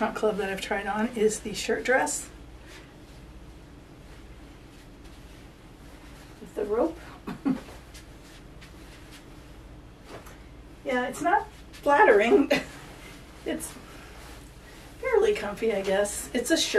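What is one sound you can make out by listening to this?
An older woman talks calmly, close by.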